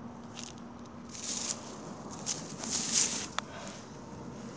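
Dry grass rustles and crackles under footsteps.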